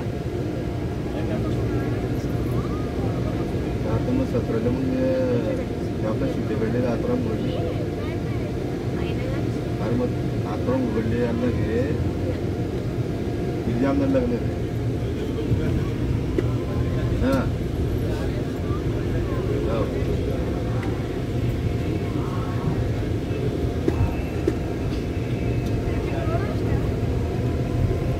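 A vehicle drives along a road with a low, steady rumble.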